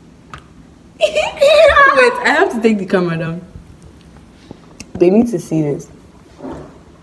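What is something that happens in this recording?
A teenage girl talks excitedly close by.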